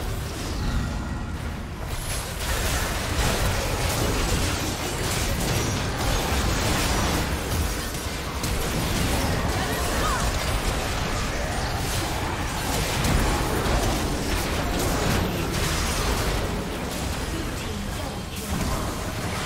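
Spell effects burst and clash rapidly in a game battle.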